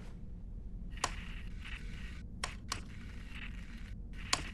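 Metal clicks sharply as a robot moves its claws.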